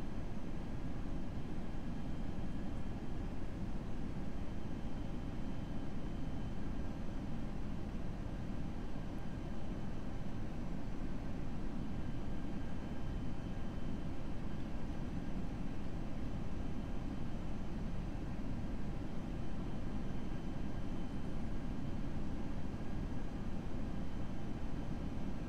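Jet engines and rushing air roar steadily.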